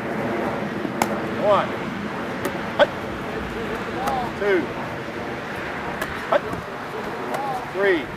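A football slaps into a player's hands.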